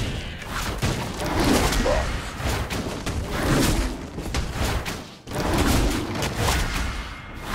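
Magic blasts and hits crackle and thump in a fast fight.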